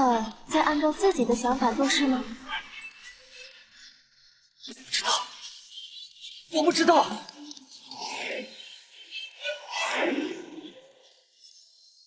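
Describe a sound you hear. A young man speaks with strained emotion.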